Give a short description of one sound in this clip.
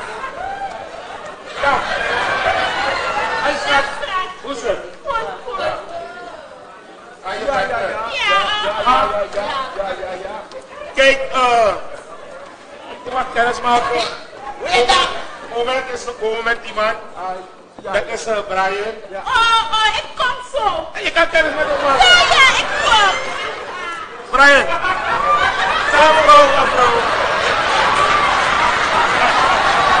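Men talk and argue loudly on a stage, heard through a microphone.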